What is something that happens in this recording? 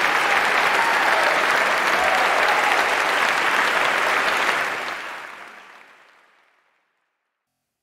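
A large choir sings in a reverberant hall and fades out.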